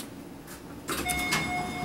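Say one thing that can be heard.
An elevator button beeps when pressed.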